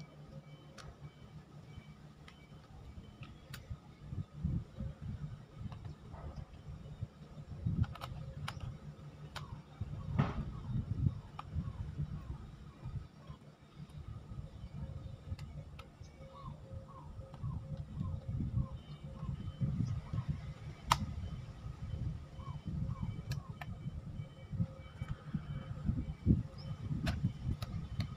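Hand shears snip repeatedly at grass.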